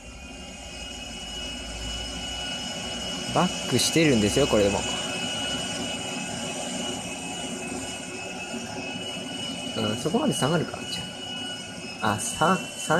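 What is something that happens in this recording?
A jet engine whines steadily.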